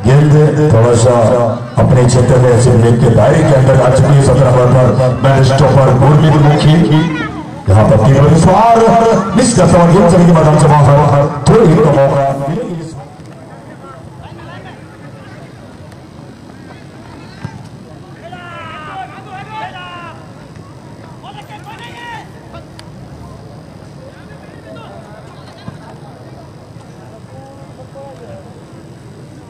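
A large outdoor crowd murmurs and cheers in the distance.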